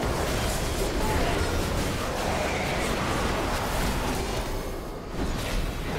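Fighting sounds crash and crackle with magical blasts.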